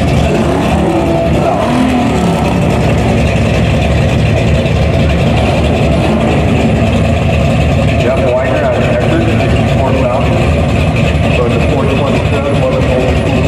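A car engine rumbles loudly and roughly nearby.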